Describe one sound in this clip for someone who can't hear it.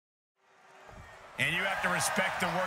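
A large crowd cheers in a big echoing arena.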